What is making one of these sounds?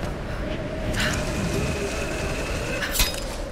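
A rope creaks and hisses as a figure slides down it.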